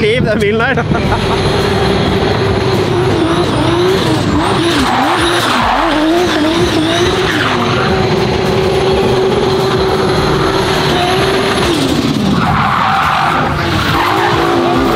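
A car engine revs and roars loudly.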